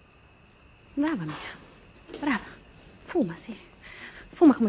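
A woman speaks close by in a tense, emphatic voice.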